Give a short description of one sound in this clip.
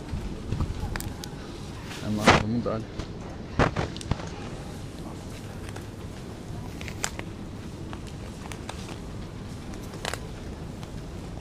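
Packages knock and rustle on a shelf.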